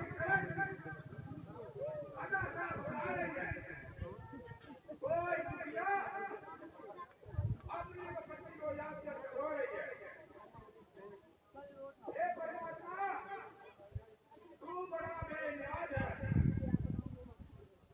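A man sings loudly through a loudspeaker, in short phrases with pauses.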